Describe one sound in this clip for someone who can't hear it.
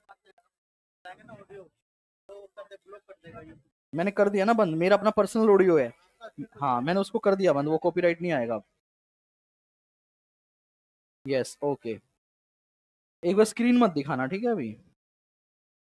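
A man speaks with animation into a microphone, in short bursts with pauses.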